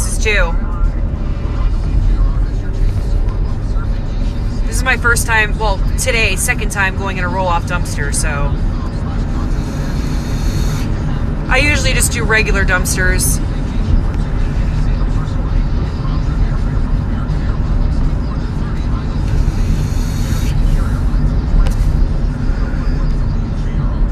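A car drives along a road with a steady low rumble from inside the cabin.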